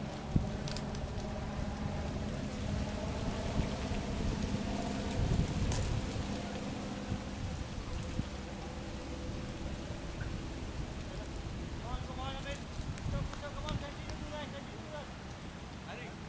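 Men talk to each other outdoors at a distance.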